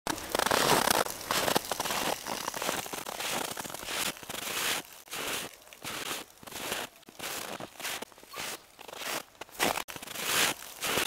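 Wind gusts roar across the microphone outdoors.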